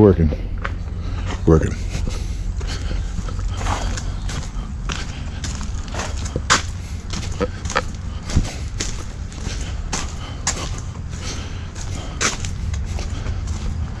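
Footsteps crunch and scuff along a path.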